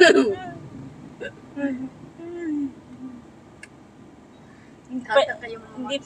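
Young women laugh and chatter close by.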